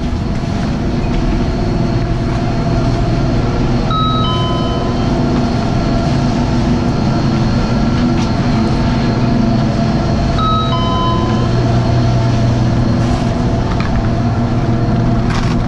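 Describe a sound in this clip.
A chairlift's machinery hums steadily and grows louder.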